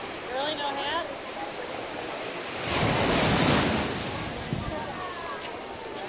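Waves wash and break onto the shore.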